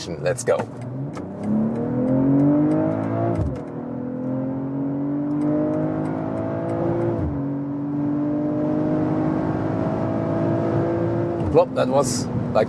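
A car engine roars and climbs in pitch as the car accelerates hard through the gears.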